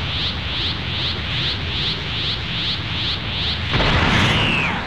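An energy beam roars with a rapid, pulsing hum.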